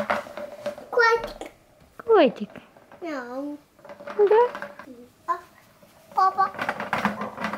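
A little girl talks and squeals in a high voice close by.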